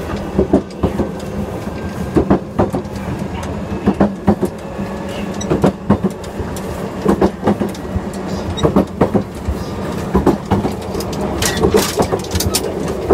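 A gangway floor plate between train cars clanks and rattles.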